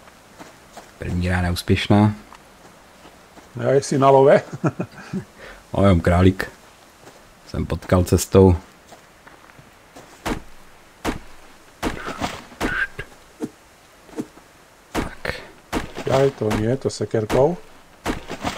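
A man talks into a microphone in a relaxed way.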